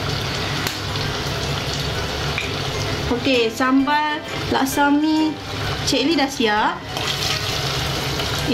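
A thick sauce bubbles and simmers in a pot.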